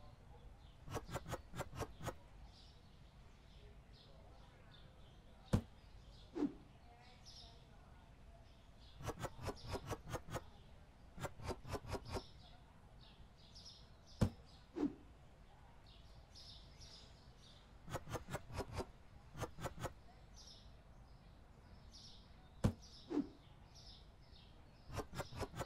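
Goods are set down on a shelf with quick, light knocks in short bursts.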